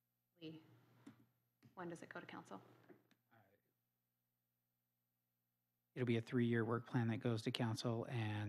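A woman speaks calmly into a microphone, pausing between phrases.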